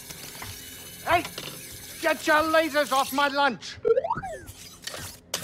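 A small robot chirps and beeps.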